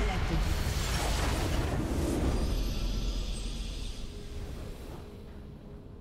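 A burst of magical game effects crackles and booms.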